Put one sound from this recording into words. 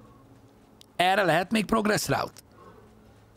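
A man speaks loudly and animatedly into a close microphone.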